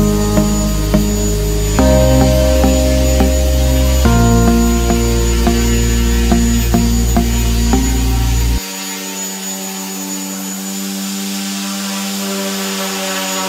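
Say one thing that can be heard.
A small toy robot whirs as it moves across a hard floor.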